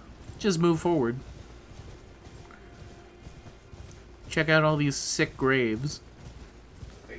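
A horse gallops over soft ground.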